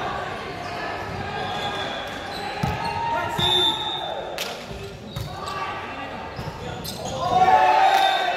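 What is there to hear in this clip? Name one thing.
Young players shout and call out across a large echoing gym.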